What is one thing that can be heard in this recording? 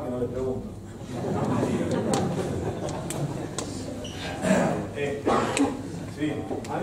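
A man speaks to an audience.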